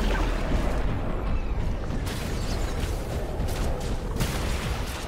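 Magic spells crackle and boom in a busy battle.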